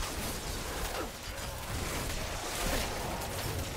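Blows land with heavy thuds.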